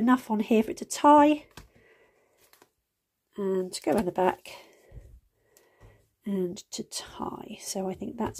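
Paper tape crinkles softly as it is wrapped and pressed onto a small board.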